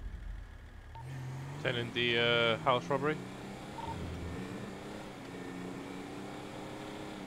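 A car engine revs and speeds up with a rising whine.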